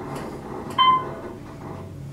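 An elevator chime dings once.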